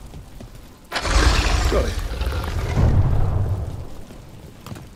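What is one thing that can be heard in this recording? A heavy stone door grinds open.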